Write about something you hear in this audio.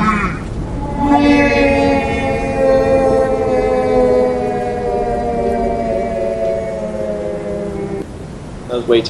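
A magical ringing hum sounds and slowly falls in pitch.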